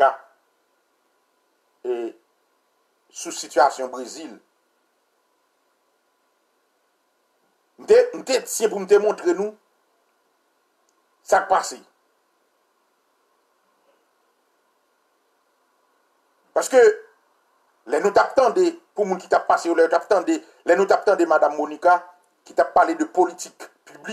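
A man speaks up close in short bursts, with pauses, then talks steadily and with animation.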